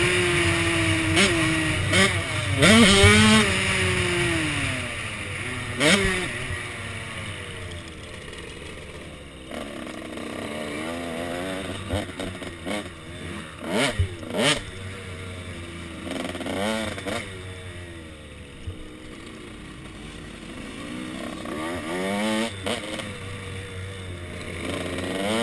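A dirt bike engine revs and whines up and down close by.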